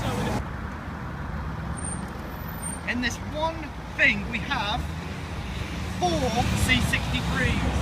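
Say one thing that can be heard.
A car engine rumbles as a car drives slowly past.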